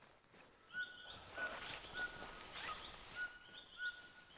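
Leafy branches rustle as someone pushes through a bush.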